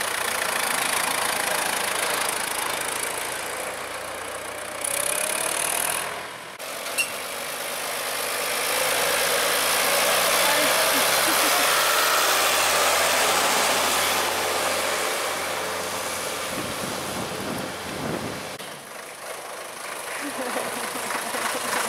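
A tractor engine chugs and rumbles nearby.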